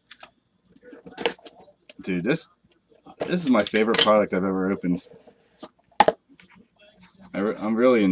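Hands tear open a card pack wrapper.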